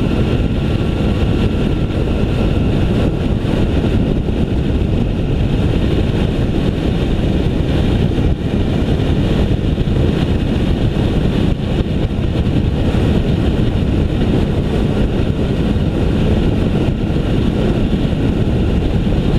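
Wind rushes loudly past a moving rider.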